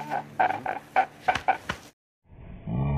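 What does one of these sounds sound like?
A man wails and sobs loudly.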